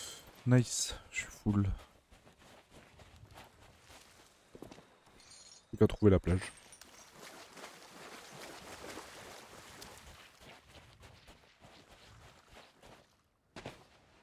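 Waves wash softly onto a sandy shore.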